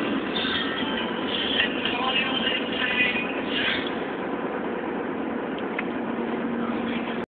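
A car's engine and tyres rumble steadily on the road.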